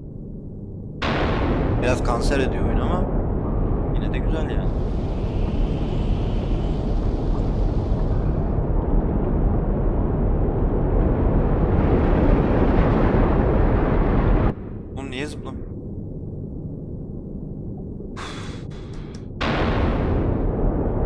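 Steam hisses loudly in bursts.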